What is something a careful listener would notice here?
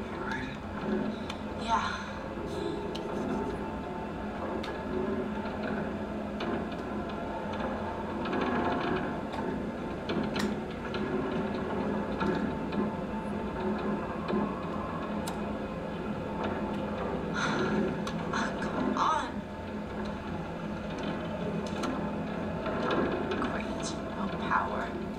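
A woman talks and laughs into a microphone.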